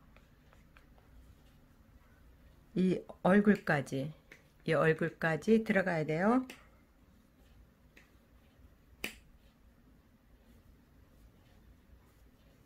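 Hands rub and squeeze a soft stuffed toy with faint rustling.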